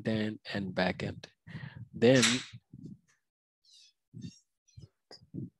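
A young man speaks calmly into a headset microphone, heard as if over an online call.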